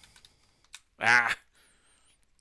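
A video game character bursts apart with a sharp electronic blast.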